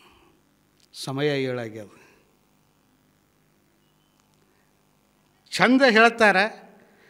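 A middle-aged man speaks with animation into a microphone, in short loud bursts with long pauses.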